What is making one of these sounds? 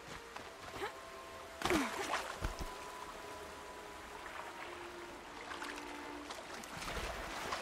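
Water splashes as someone wades and swims through it.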